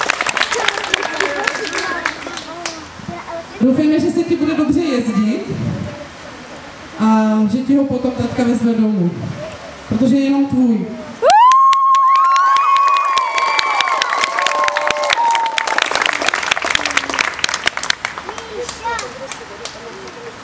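People clap their hands outdoors.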